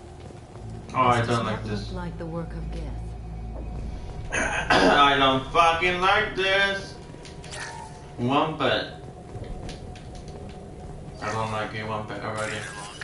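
A young man talks casually into a nearby microphone.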